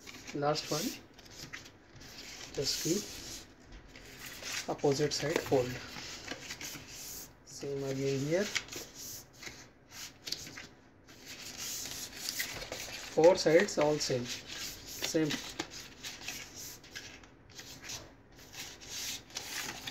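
Thin card is folded and creased by hand.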